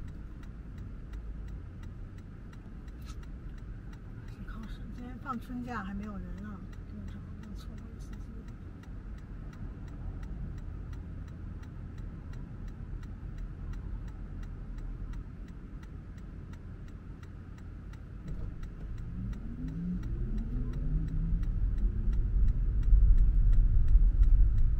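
A car engine hums steadily and grows louder as the car accelerates.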